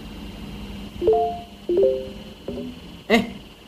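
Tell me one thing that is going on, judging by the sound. Short electronic chimes play one after another.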